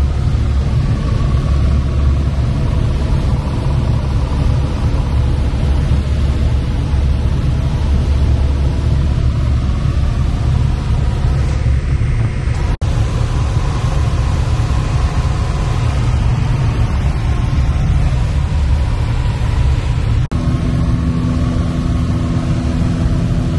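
A small plane's propeller engine drones loudly and steadily from inside the cabin.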